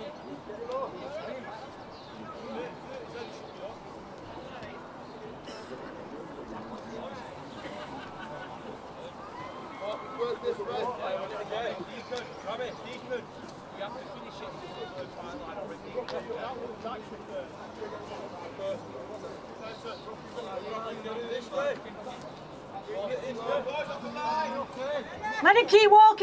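Men's voices call out and chatter across an open field outdoors.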